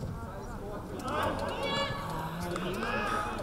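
Football players shout to each other outdoors.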